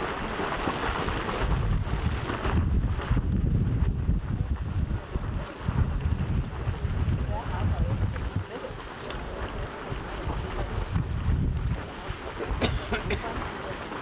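Hot water splashes and bubbles from small geyser vents.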